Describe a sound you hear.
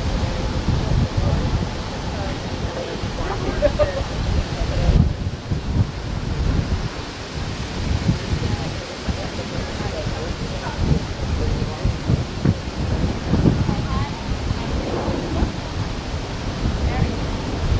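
Wind gusts outdoors.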